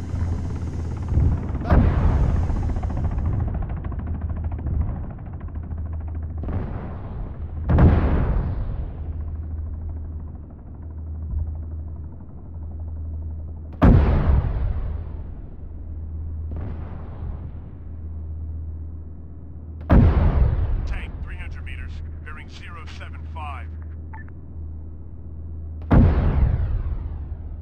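A tank engine rumbles steadily and low.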